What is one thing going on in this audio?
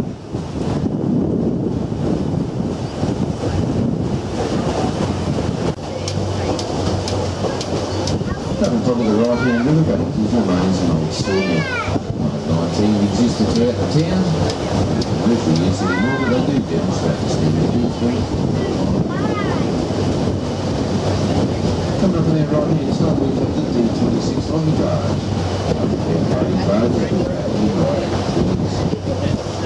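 Water splashes softly against a moving boat's hull.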